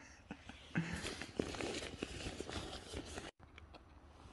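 A hand rustles through a nylon bag.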